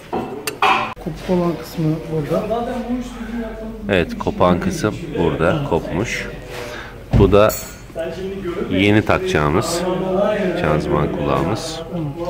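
A man talks calmly and closely, explaining.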